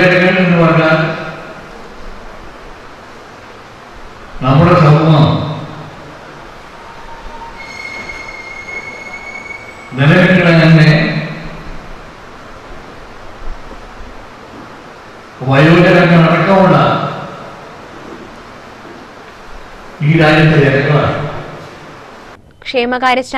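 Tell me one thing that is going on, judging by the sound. An elderly man speaks loudly through a microphone in short bursts, with echo in a large hall.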